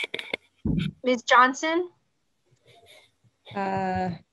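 A middle-aged woman speaks over an online call.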